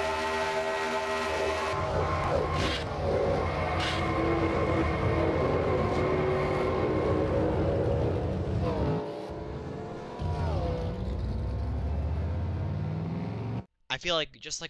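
Race car engines roar at high speed, whining as they pass.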